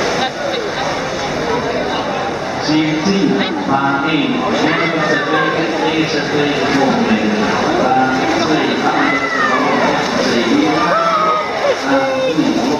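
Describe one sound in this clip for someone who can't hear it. Swimmers splash through the water with steady strokes.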